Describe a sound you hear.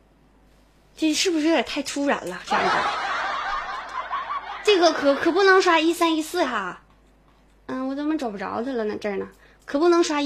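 A young woman speaks cheerfully into a close microphone.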